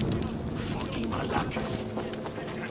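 A man speaks with relief, close by.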